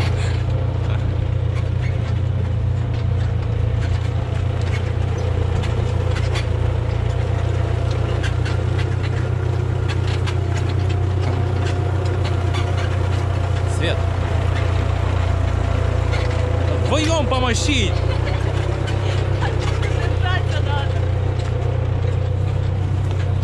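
A tractor engine idles with a steady low rumble nearby.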